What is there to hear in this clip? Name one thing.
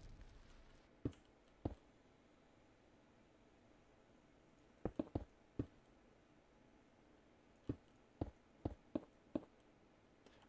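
Game blocks click softly as they are placed.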